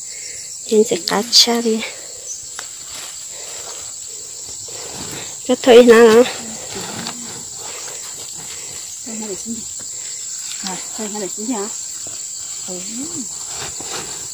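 Women talk to each other outdoors, close by.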